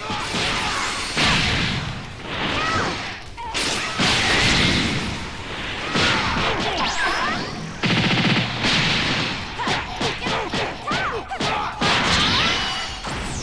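Energy blasts whoosh and crackle in quick bursts.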